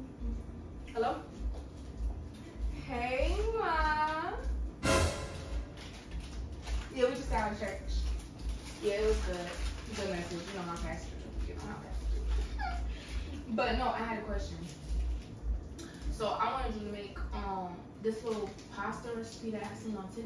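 A woman talks animatedly on a phone nearby.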